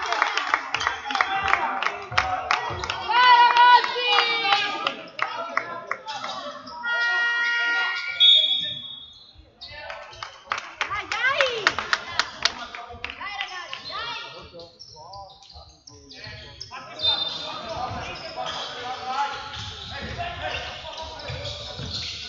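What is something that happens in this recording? A basketball bounces on the floor in a large echoing hall.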